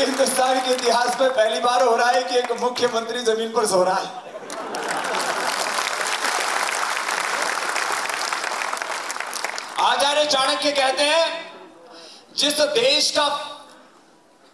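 A man speaks animatedly into a microphone over a loudspeaker.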